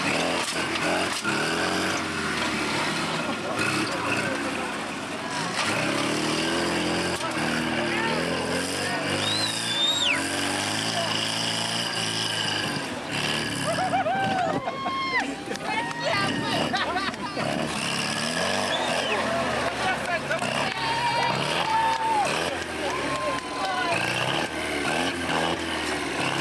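A crowd of men talks and shouts nearby outdoors.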